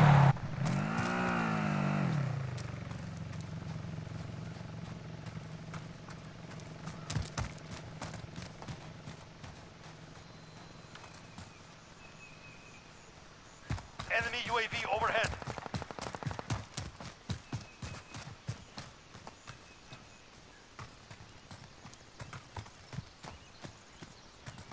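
Footsteps crunch on snow and dry grass.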